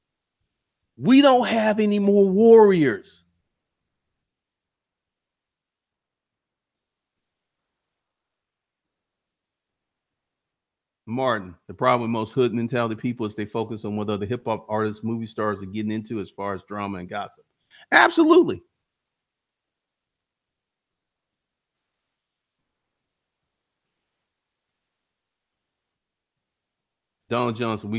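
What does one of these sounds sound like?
A man speaks with animation, close into a microphone, in bursts with long silences between.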